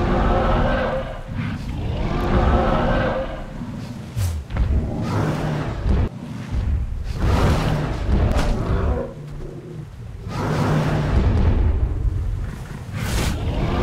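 Large creatures growl and roar loudly.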